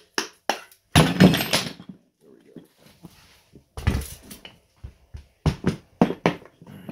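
A mallet knocks on a metal part.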